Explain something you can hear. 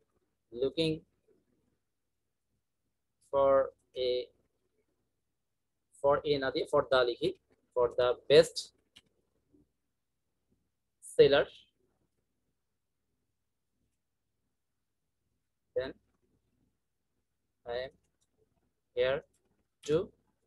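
A young man speaks slowly and calmly into a close microphone, in short phrases with pauses.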